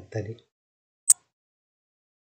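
A computer mouse clicks once.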